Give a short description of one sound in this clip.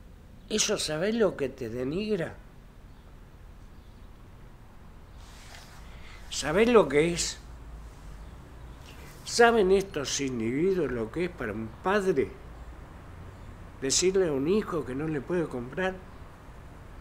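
An elderly man speaks calmly and close by, in short bursts with pauses.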